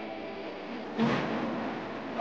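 Feet land with a thud on a wooden balance beam in a large echoing hall.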